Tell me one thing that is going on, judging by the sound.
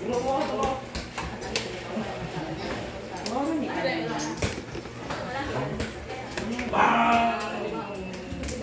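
Dishes and utensils clink.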